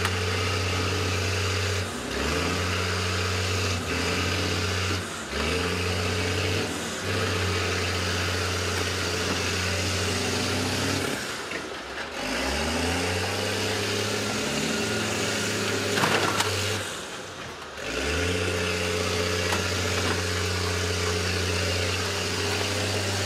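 Heavy engines roar and rev loudly, rising and falling in pitch.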